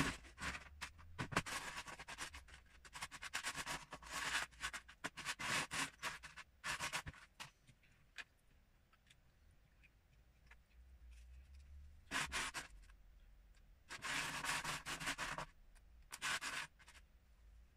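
Plastic toy bricks rattle and clatter as a hand rummages through a plastic tub.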